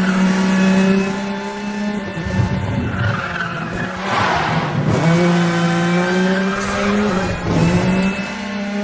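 A sports car engine roars at high revs, dropping and rising as the car shifts gears.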